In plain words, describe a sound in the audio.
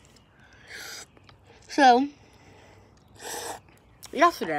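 A teenage boy slurps and chews food close up.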